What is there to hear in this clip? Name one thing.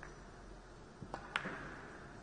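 A cue strikes a ball with a sharp tap.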